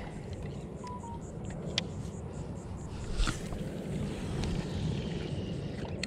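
A fishing reel whirs.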